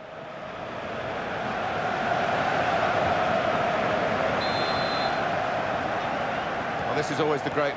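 A stadium crowd roars steadily, swelling in the first seconds.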